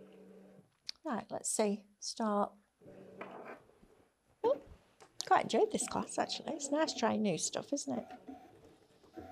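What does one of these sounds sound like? A middle-aged woman speaks calmly and closely into a microphone.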